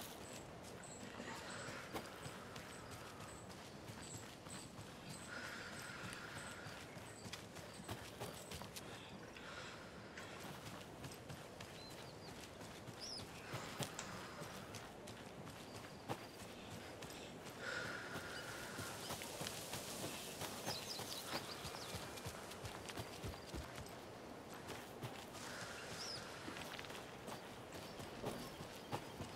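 Footsteps rustle through tall grass and undergrowth.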